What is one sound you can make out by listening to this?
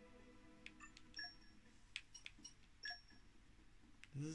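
Short electronic menu chimes blip from a video game.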